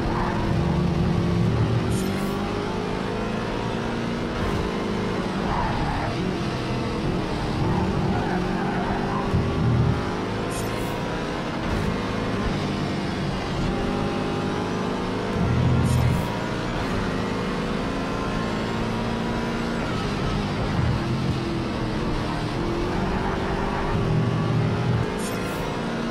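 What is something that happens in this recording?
A racing car engine roars, rising and falling in pitch as it revs through the gears.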